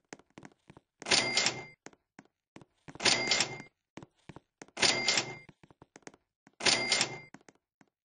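Bright coin chimes ring out in short repeated bursts.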